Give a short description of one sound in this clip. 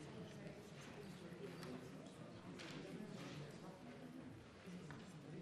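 A man speaks steadily through a microphone in a large hall.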